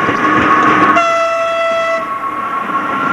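A train horn sounds a short, loud blast.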